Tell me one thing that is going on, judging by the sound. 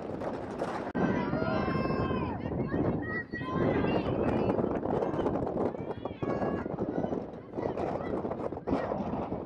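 A crowd of spectators cheers and calls out from the sidelines.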